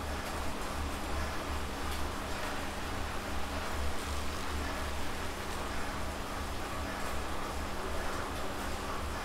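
A man breathes heavily.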